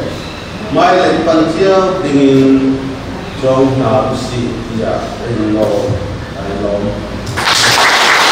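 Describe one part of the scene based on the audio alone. A middle-aged man speaks into a microphone over a loudspeaker, reading out steadily.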